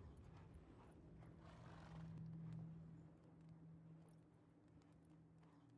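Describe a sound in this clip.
A wolf growls low and steadily nearby.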